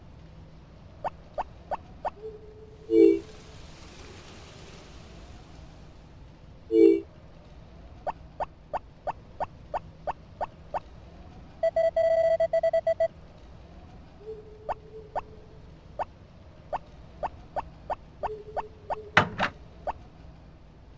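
Small footsteps tap quickly and evenly on a path.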